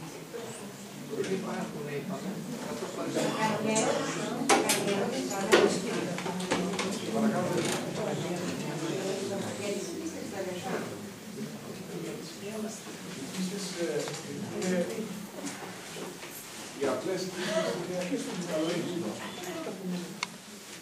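A man speaks to an audience in an echoing hall.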